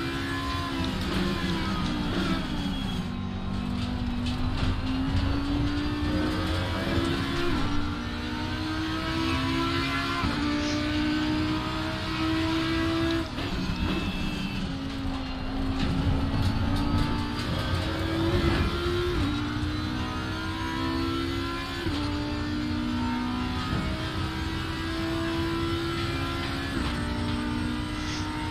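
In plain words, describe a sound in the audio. A race car engine roars loudly, rising in pitch as it speeds up and dropping sharply at each gear change.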